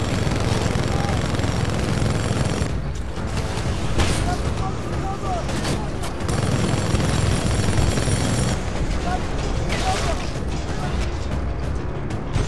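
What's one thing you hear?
Explosions boom close by.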